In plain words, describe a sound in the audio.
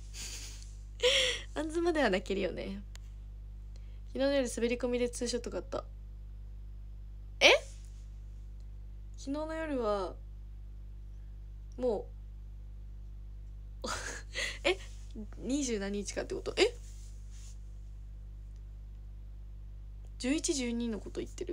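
A young woman talks close to a microphone, in short bursts with pauses.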